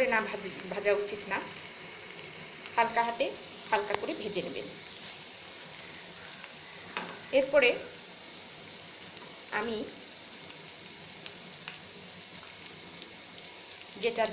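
Food sizzles steadily in hot oil in a frying pan.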